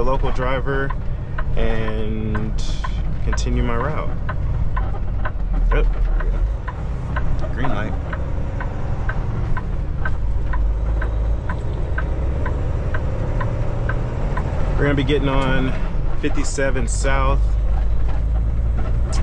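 A truck engine rumbles low and steady while driving.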